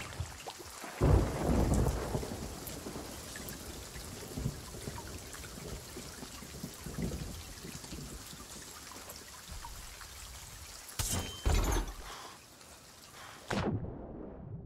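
Stormy sea waves churn and crash steadily.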